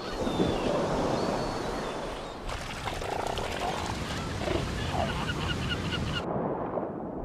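Killer whales splash and churn through rough water.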